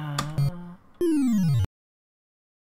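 An arcade game plays a falling electronic tone for a wrong answer.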